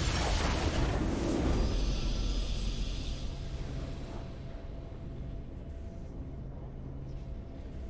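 A triumphant game fanfare swells and then fades.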